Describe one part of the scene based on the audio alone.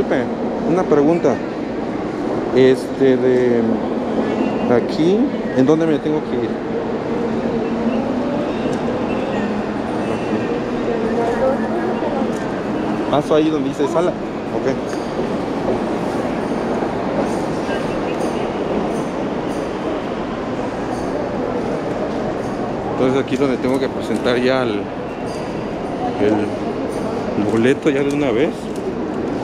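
A murmur of voices echoes through a large hall.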